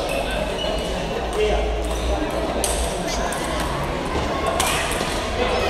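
A table tennis ball clicks back and forth across a table.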